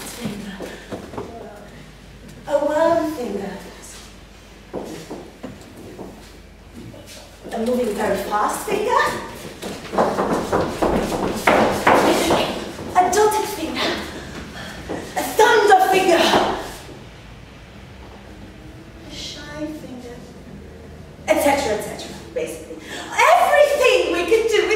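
A woman speaks and exclaims expressively in a room with some echo.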